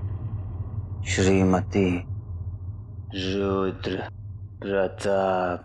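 A man speaks tensely at close range.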